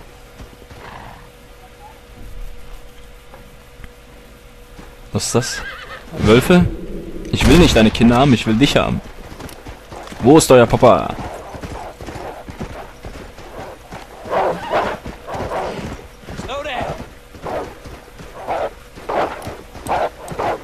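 A horse gallops over snowy ground with hooves thudding.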